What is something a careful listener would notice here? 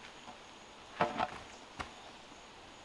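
A bamboo pole thuds and clatters onto the ground.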